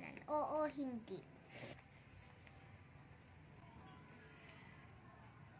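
A hand brushes softly across a paper page.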